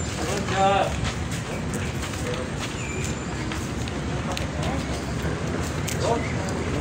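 Large sheets of paper rustle and crinkle in hands.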